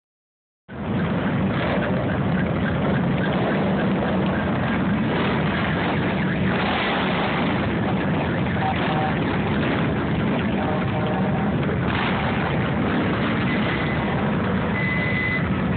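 Many motorcycle engines rumble loudly as a long line of bikes rides slowly past close by.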